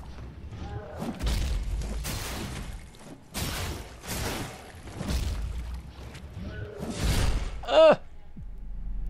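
A staff swings and strikes in a fight.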